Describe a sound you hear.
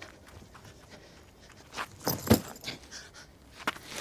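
A person falls heavily to the ground.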